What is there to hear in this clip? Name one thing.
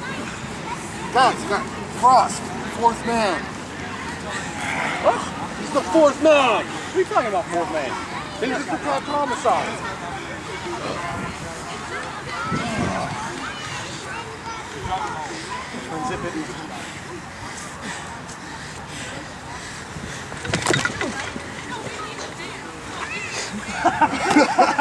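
A crowd of men and women shout and cheer nearby outdoors.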